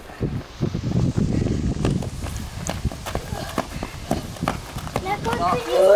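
Children's footsteps run on gravel.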